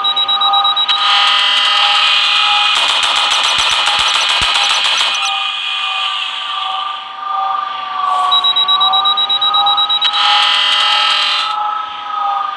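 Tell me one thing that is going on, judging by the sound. Laser guns fire in rapid bursts.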